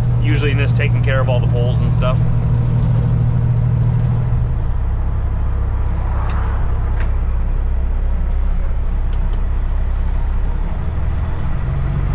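A truck's diesel engine rumbles steadily from inside the cab, settling lower as the truck slows.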